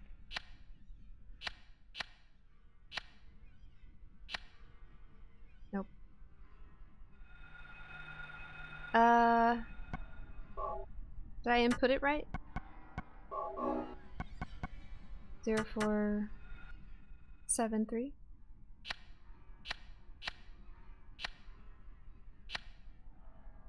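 Keypad buttons click sharply as they are pressed, one at a time.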